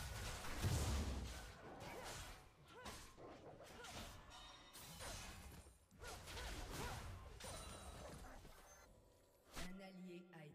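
Fighting sound effects clash and burst from a video game.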